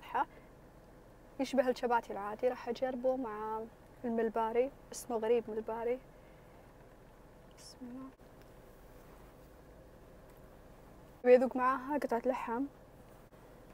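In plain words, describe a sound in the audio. A woman talks with animation close to the microphone.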